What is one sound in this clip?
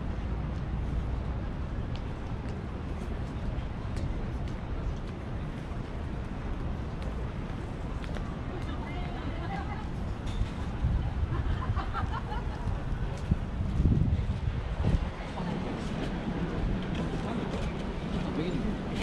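Footsteps tap on the pavement.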